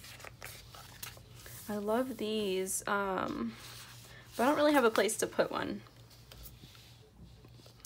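A stiff page flips over.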